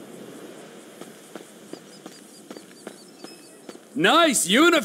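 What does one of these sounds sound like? Footsteps patter quickly on hard pavement.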